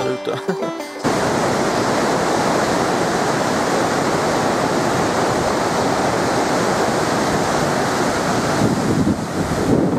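A river rushes loudly over rocks.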